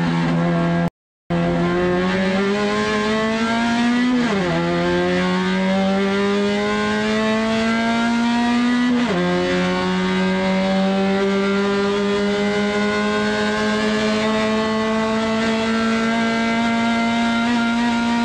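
A race car engine roars loudly from close by, rising in pitch and dropping sharply at gear changes.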